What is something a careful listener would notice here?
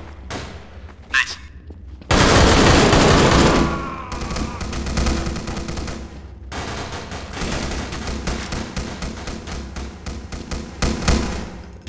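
Footsteps run quickly across hard stone floors.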